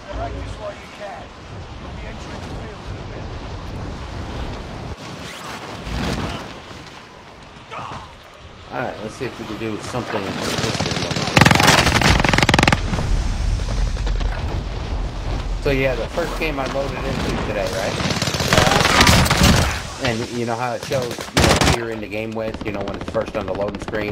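A man talks with animation close to a headset microphone.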